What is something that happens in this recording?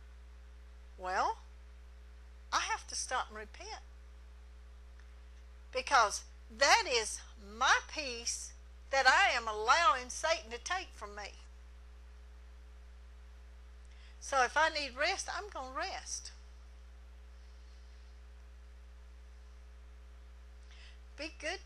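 A middle-aged woman speaks with animation into a microphone, in pauses.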